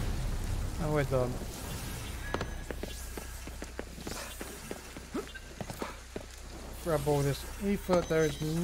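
Heavy rain hisses steadily.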